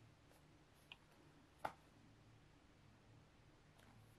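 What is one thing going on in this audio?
A laptop slides out of a snug box with a soft scrape.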